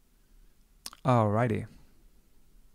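A man speaks a short word close to a microphone.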